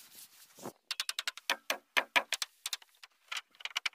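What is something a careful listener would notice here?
A hammer drives nails into wooden boards with quick repeated taps.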